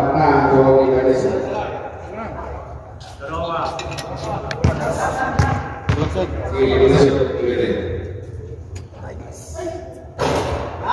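Men talk and call out across an echoing court.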